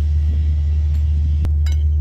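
A cloth rubs against a metal part.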